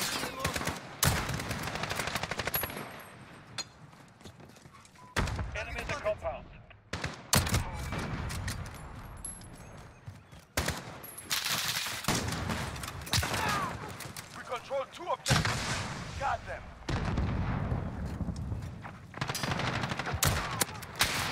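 Rifle shots crack loudly.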